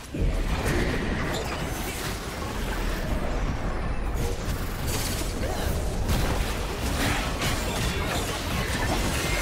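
Spell effects crackle and burst during a game fight.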